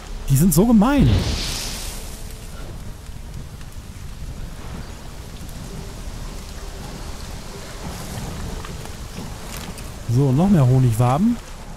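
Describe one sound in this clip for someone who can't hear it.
Flames burst up with a whoosh and crackle.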